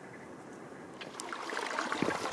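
Water trickles and splashes over rocks.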